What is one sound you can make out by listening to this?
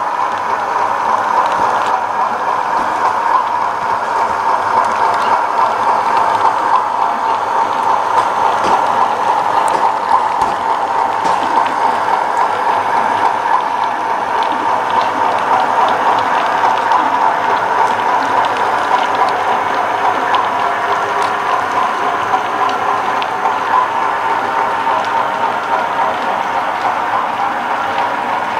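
A small electric motor hums steadily as a model train runs along the track.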